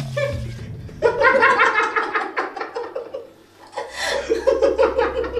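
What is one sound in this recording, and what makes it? A woman laughs loudly and gleefully close by.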